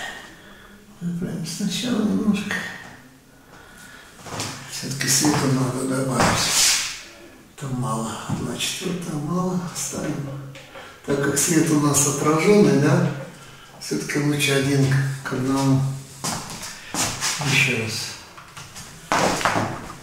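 A middle-aged man talks calmly close by, in a small echoing room.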